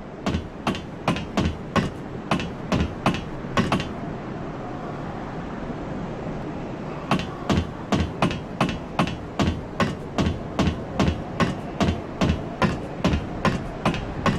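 Hands and feet knock on the rungs of a ladder while climbing.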